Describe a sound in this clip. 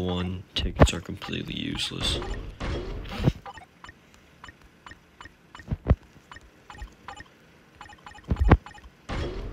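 Short electronic clicks and chimes sound as menu buttons are tapped.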